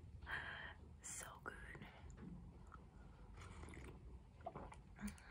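A young woman sips a hot drink with soft slurps.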